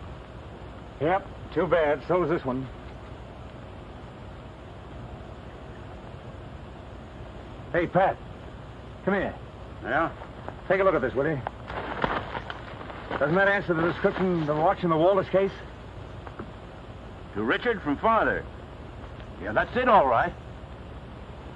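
A man speaks in short, low phrases, close by.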